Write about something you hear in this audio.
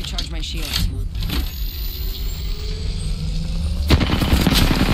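A shield battery charges with a rising electronic hum.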